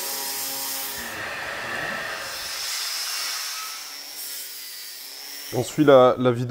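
An angle grinder whines against metal.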